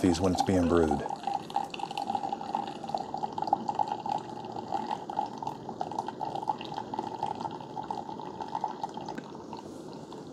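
Coffee trickles into a glass mug.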